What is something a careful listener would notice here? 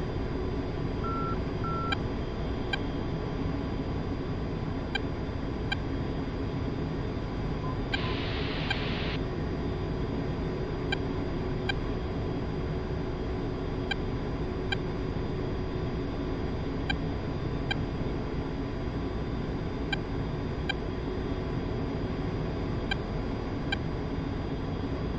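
A jet engine roars steadily inside the cockpit.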